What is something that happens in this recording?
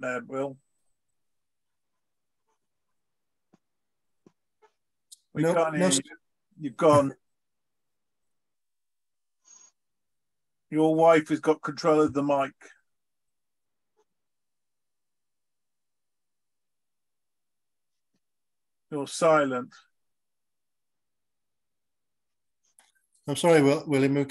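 Men talk casually over an online call, in short bursts with pauses.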